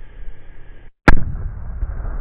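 An explosion booms once.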